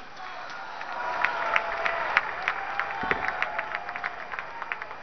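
A large crowd claps outdoors.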